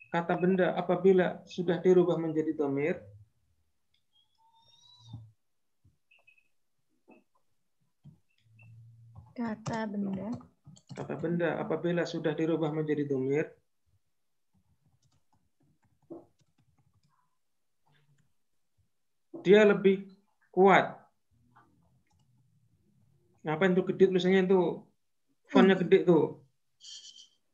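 A man speaks calmly into a microphone, heard over an online call, in short bursts with pauses.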